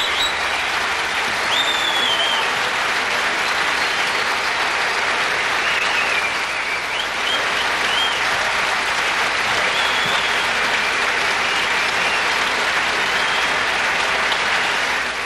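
A large audience applauds loudly and steadily in a big hall.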